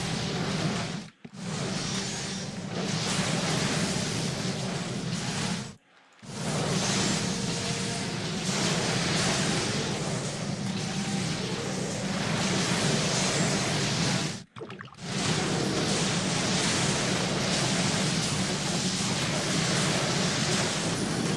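Fantasy combat sounds of spells and blows crackle steadily.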